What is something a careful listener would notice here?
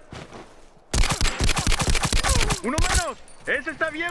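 Rapid gunfire bursts loudly from an automatic rifle.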